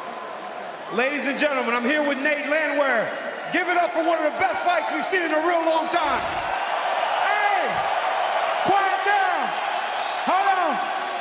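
A man speaks into a microphone, interviewing over the arena loudspeakers.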